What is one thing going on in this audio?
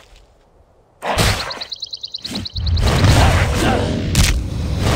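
A magic spell bursts with a crackling rush.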